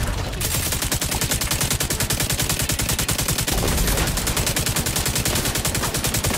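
A machine gun fires in a rapid, steady burst.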